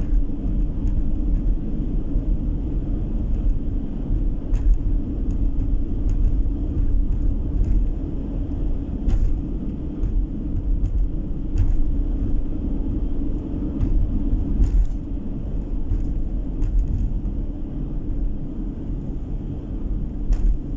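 Tyres roll over a damp road surface with a low rumble.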